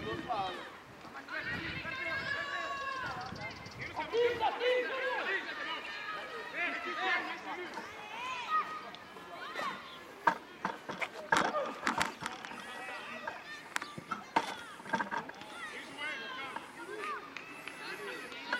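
Children shout and call out across an open outdoor field.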